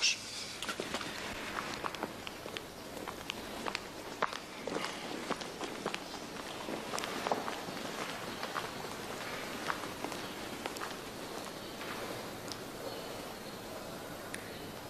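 Footsteps click on a hard floor in an echoing hall.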